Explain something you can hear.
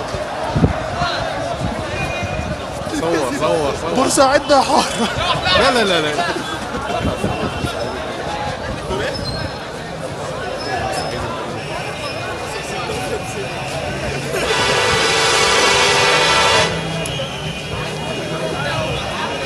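A large crowd of protesters chants and shouts outdoors.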